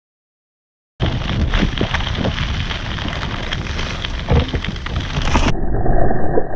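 Skate wheels roll and rattle over gravel.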